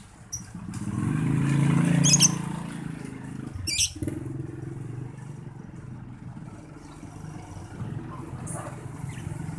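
A lovebird chirps in short, shrill bursts.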